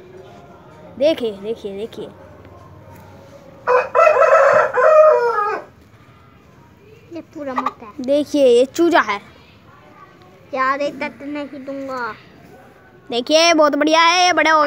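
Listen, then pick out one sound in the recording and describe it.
A chicken clucks and squawks close by.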